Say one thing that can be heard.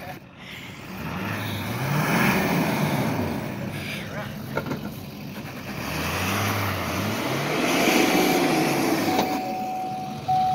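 A truck engine revs up and down in bursts.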